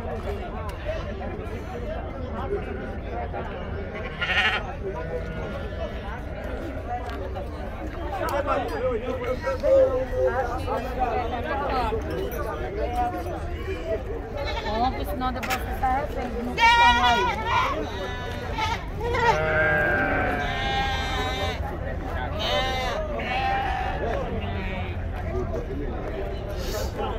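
A crowd of men talks and calls out outdoors.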